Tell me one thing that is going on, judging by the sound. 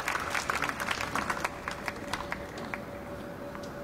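A small crowd claps outdoors, then the clapping dies away.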